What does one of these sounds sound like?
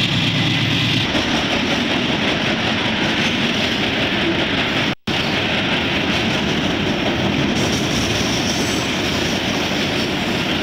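Freight cars rumble and clatter steadily along the rails.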